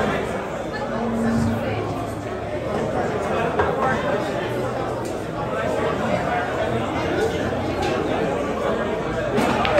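A crowd chatters loudly all around.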